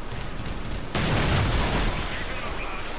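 A cannon fires with a loud blast.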